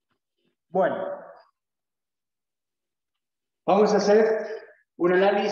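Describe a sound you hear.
A man speaks calmly in short phrases.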